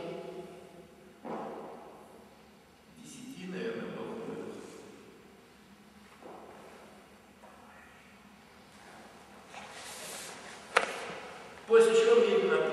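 A middle-aged man talks calmly nearby.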